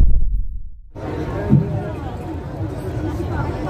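A crowd murmurs and chatters nearby.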